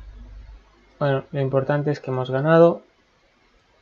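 A young man speaks briefly and with animation into a microphone.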